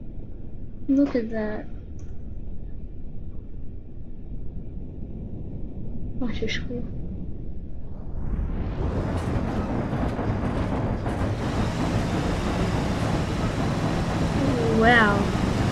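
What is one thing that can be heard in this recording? A truck engine rumbles steadily, growing louder and rougher.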